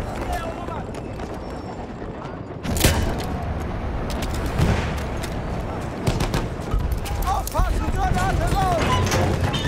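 Rifle shots crack sharply, again and again.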